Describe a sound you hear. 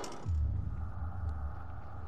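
A wooden crate lid creaks open.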